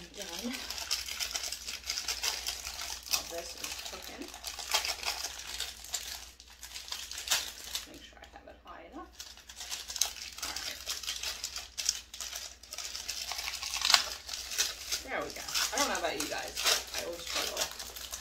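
A plastic bag crinkles and rustles in a woman's hands.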